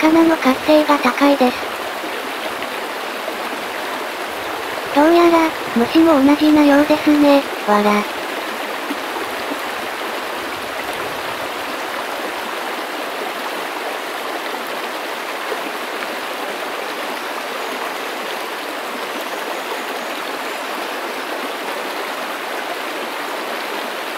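A shallow stream flows and gurgles steadily over stones.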